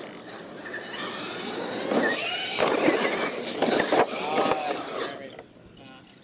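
Electric motors of toy trucks whine as the trucks race over dirt.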